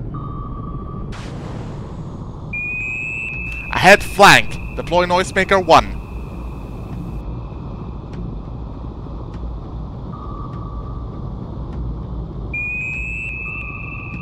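A submarine rumbles low as it glides underwater.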